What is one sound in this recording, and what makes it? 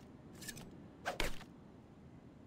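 A gun fires a few sharp shots.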